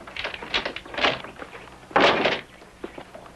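A man kicks a wooden door with heavy thuds.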